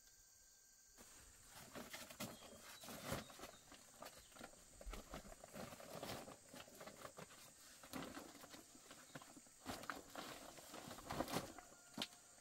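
Cloth and a plastic sack rustle and crinkle as they are handled close by.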